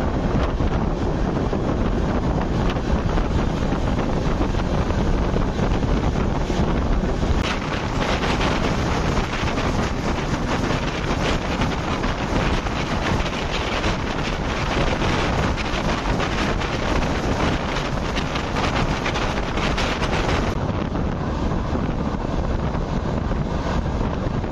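Wind rushes loudly past an open train door.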